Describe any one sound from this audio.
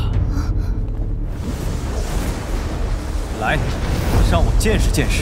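Flames roar and whoosh.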